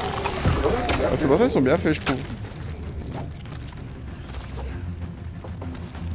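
A creature bursts apart with a loud splattering blast.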